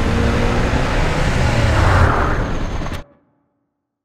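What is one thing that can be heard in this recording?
A motorbike engine roars.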